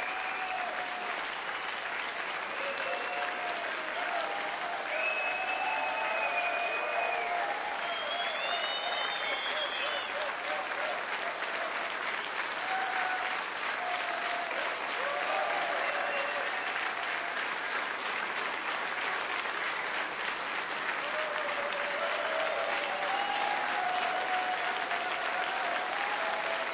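A large crowd applauds steadily throughout.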